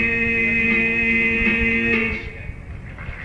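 An electric guitar plays.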